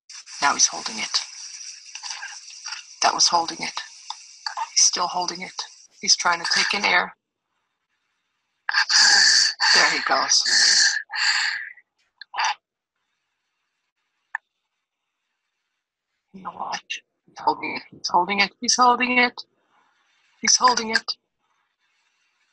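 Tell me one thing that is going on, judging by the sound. A young child breathes noisily through an open mouth in sleep.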